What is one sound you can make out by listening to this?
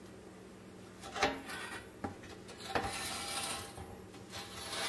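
Gloved hands handle and knock a thin metal toy body on a wooden bench.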